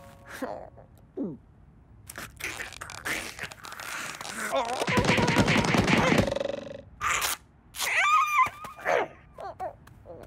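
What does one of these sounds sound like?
A cartoon bird squawks and chatters excitedly.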